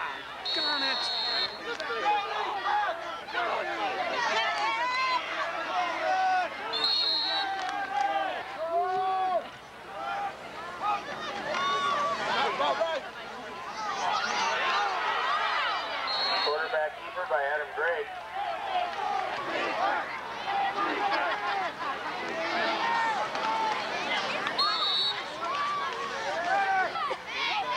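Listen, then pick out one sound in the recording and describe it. A crowd of spectators talks and cheers outdoors.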